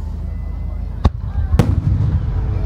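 Firework shells burst overhead with sharp booms that echo outdoors.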